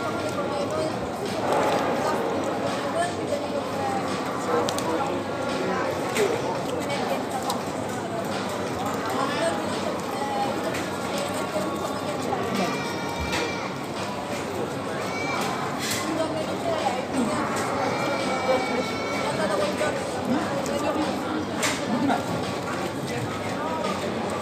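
A paper wrapper crinkles and rustles.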